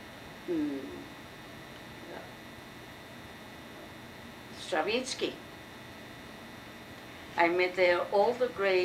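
An elderly woman speaks nearby, in short calm phrases.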